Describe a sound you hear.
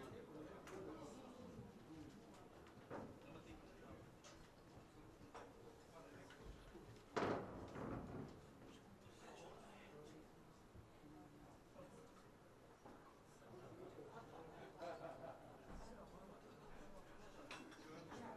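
An acoustic guitar plays softly.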